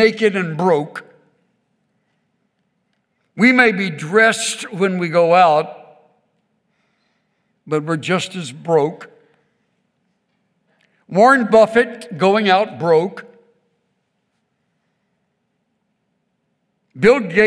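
An elderly man reads out slowly into a microphone, with pauses between phrases.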